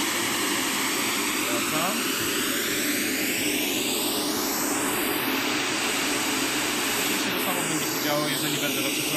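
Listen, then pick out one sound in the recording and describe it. A loudspeaker plays a steady rushing hiss that shifts in tone as the speaker is moved.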